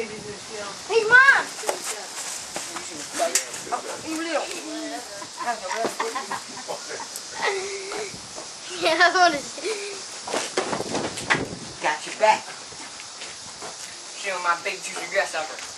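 A young teenage boy talks and shouts close by.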